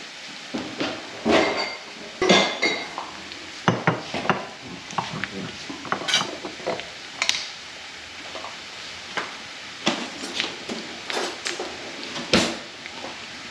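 A jar lid clicks and rattles as it is twisted.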